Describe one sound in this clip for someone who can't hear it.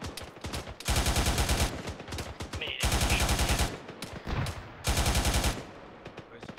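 A machine gun fires in loud rapid bursts.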